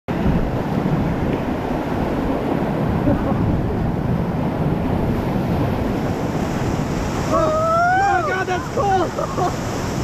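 Rough water rushes and splashes loudly around a raft.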